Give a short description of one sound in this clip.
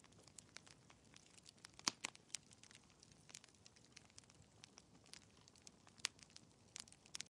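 A fire crackles and pops close by.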